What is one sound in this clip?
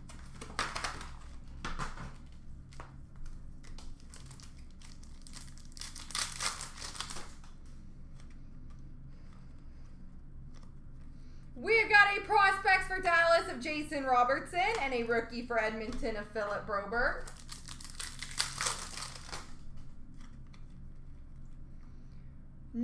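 Plastic card cases click and clatter as hands sort through them.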